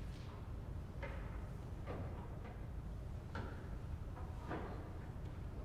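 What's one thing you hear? Organ stop knobs clunk as they are pulled and pushed.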